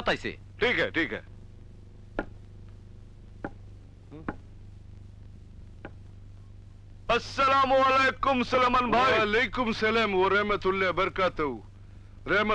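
A man speaks loudly with animation close by.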